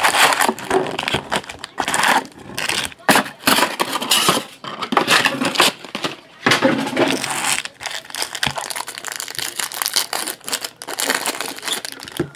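Foil card packs crinkle as they are handled.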